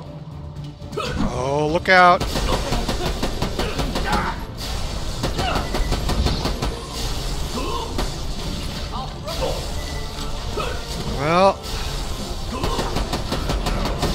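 Energy blasts zap and explode.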